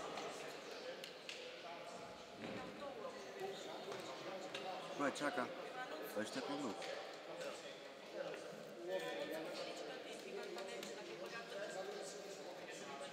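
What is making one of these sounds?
A crowd of spectators chatters in a large echoing hall.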